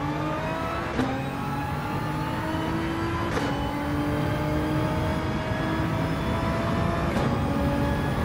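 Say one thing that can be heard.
A gearbox clicks sharply with each gear shift.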